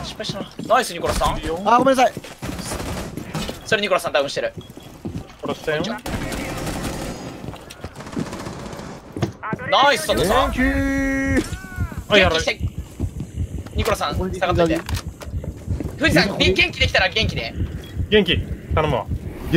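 Gunfire rings out in short rapid bursts.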